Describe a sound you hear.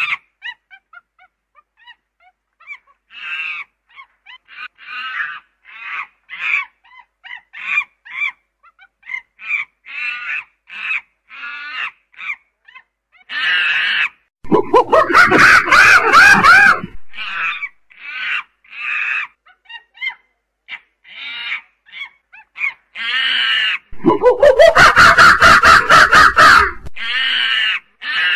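A chimpanzee pant-hoots in rising, breathy calls close by.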